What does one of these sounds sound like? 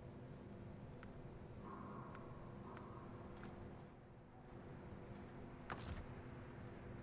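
Short, sharp menu clicks sound now and then.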